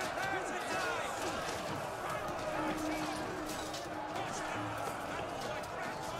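A crowd of men shouts and yells in battle.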